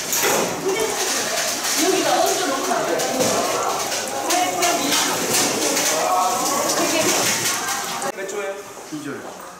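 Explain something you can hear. Several young men and women chat.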